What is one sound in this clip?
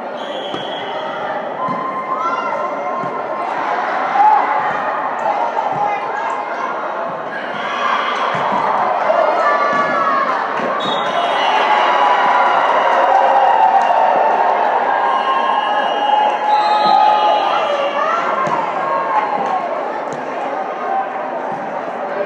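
A crowd of girls and spectators shouts and cheers in a large echoing gym.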